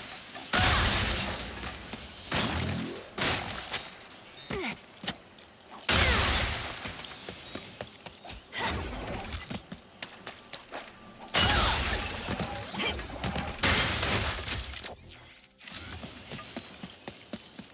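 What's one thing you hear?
Small metal pieces clink and scatter.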